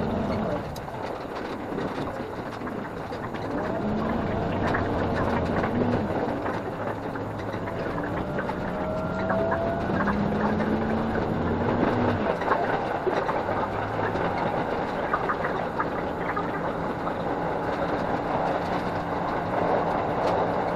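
A train rumbles and clatters steadily along the tracks.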